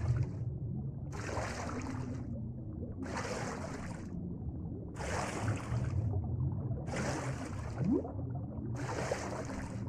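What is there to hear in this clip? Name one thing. Water swishes in steady, repeated strokes as a swimmer moves underwater.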